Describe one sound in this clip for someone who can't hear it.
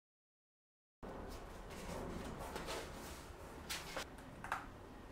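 A paper card rustles as it is slid out of an envelope and handled.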